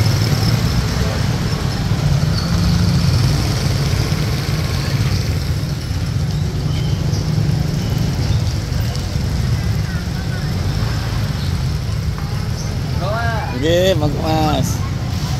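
A pedicab rolls slowly along a paved road.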